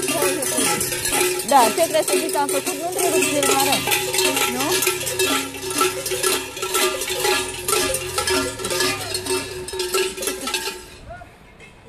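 Bells jingle and rattle steadily nearby.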